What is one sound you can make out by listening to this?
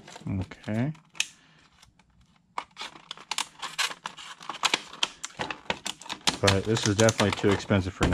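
Scissors snip through plastic packaging.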